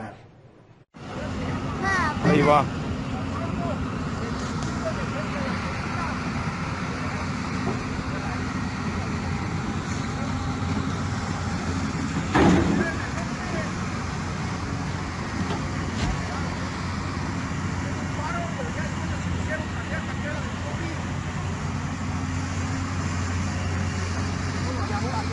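An excavator engine rumbles steadily outdoors.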